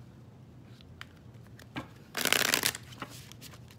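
Playing cards riffle and flap as they are shuffled.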